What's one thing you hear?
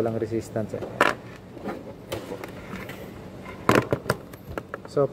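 Small plastic parts click and knock in a man's hands.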